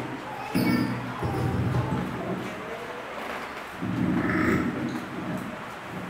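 Young children speak together in unison.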